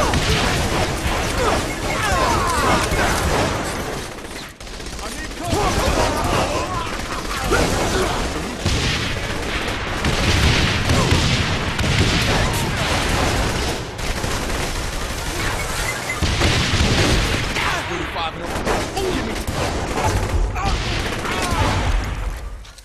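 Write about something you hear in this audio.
Pistol shots crack repeatedly.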